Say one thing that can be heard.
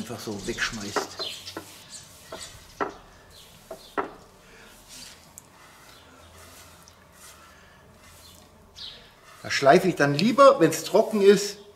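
A paintbrush swishes softly across wood.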